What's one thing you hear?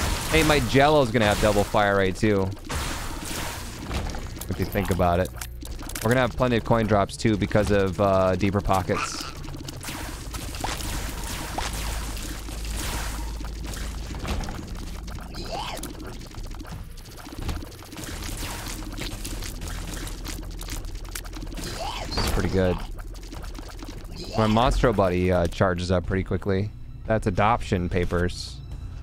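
Game sound effects pop and blast rapidly.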